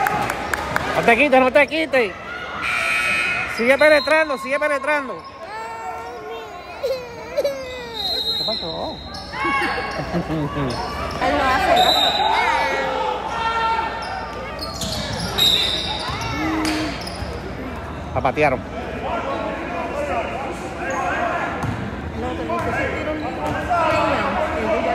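Sneakers squeak sharply on the wooden court.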